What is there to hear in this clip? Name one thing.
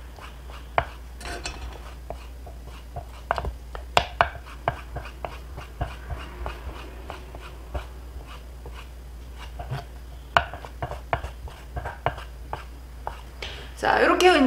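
A knife chops quickly against a wooden cutting board.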